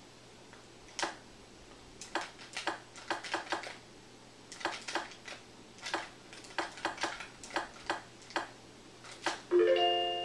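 Short electronic beeps sound in quick succession.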